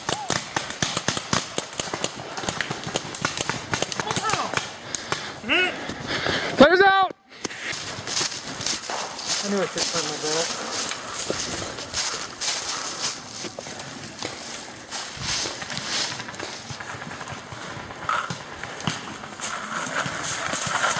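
Paintball guns fire rapid popping shots.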